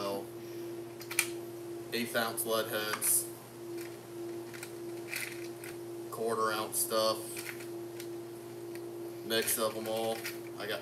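Plastic lures click and rattle as they are sorted in a tackle box.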